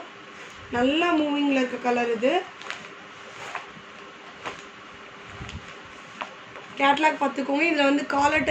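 A plastic bag crinkles and rustles as it is handled.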